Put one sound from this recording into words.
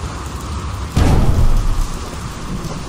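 A heavy metal machine thuds down into place with a clatter.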